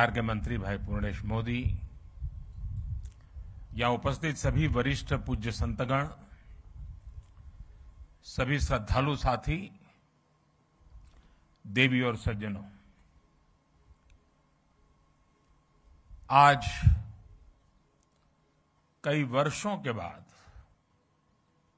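An elderly man makes a speech in bursts through a loudspeaker, pausing between phrases.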